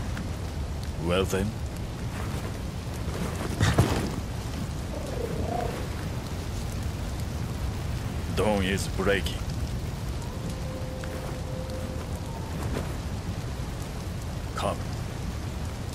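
A young man speaks quietly and calmly.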